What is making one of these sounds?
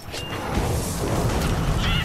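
A fiery blast roars and crackles.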